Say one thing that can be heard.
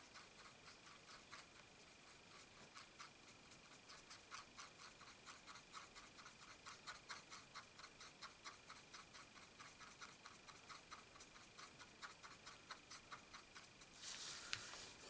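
A marker pen scratches quickly over paper in short strokes.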